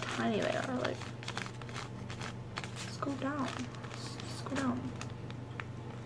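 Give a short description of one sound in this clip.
A plastic bag crinkles in a girl's hands.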